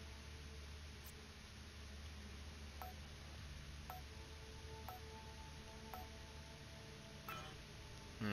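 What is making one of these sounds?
Keypad buttons beep softly as a code is entered.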